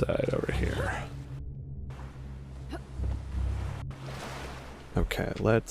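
Water rumbles, low and muffled, as if heard underwater.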